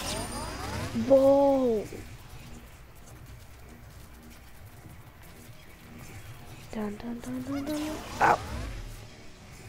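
A magical portal whooshes with a warbling, sliding tone.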